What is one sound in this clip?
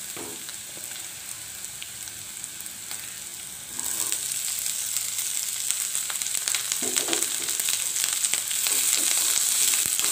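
Chopped chillies sizzle in oil in a wok.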